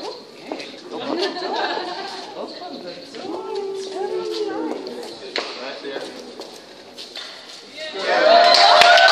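A woman talks close by.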